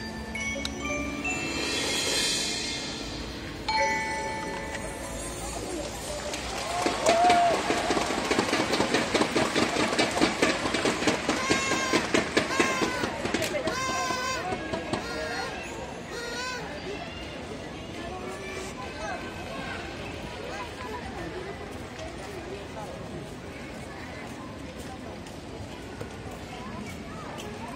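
A marching band plays pitched percussion and brass in a large echoing arena.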